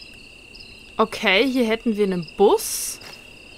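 A young woman speaks briefly and animatedly into a close microphone.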